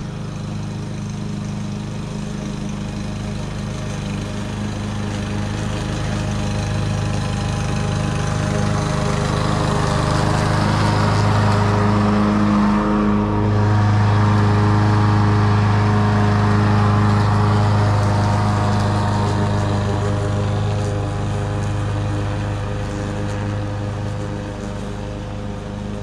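A petrol lawn mower engine hums steadily, growing louder as it comes near and fading as it moves away.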